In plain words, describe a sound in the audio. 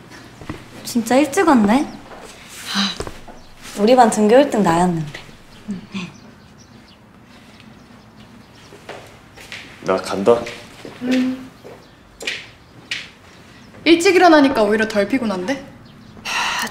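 A young woman speaks with surprise nearby.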